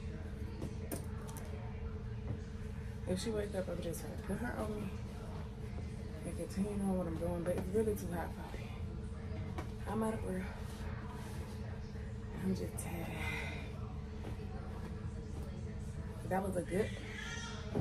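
Clothes rustle as they are folded.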